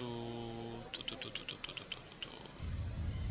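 A magical sound effect shimmers briefly.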